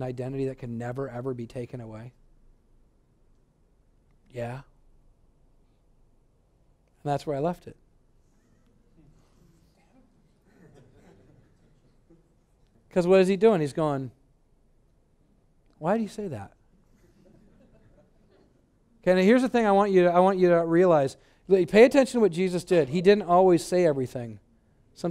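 A man speaks through a headset microphone, pausing often between phrases.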